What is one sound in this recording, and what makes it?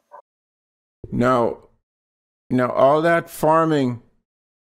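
An adult man speaks calmly over an online call.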